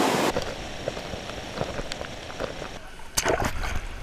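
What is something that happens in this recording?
Bare feet pad on wet rock.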